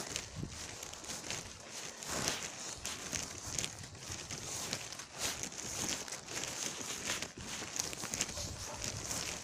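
Wind blows outdoors, buffeting close by.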